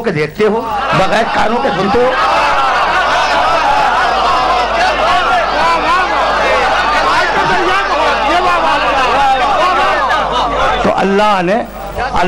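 An elderly man speaks forcefully into a microphone, heard through a loudspeaker.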